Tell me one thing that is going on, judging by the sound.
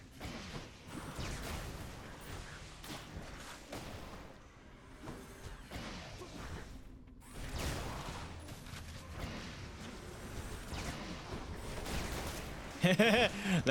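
Game combat effects clash and whoosh in quick bursts.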